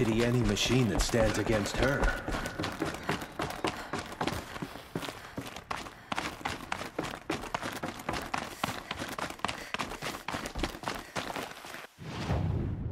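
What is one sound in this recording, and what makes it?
Footsteps tread quickly over hard ground.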